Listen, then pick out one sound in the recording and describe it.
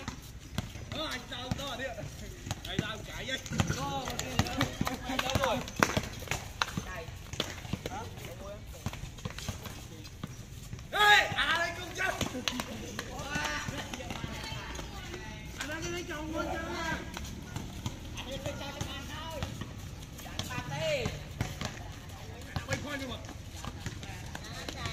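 A basketball bounces on hard concrete.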